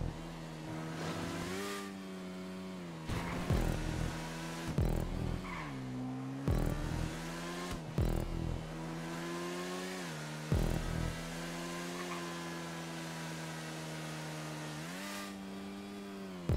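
A motorcycle engine hums steadily and rises and falls in pitch as it shifts gears.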